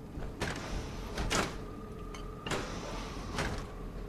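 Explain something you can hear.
A metal door slides open.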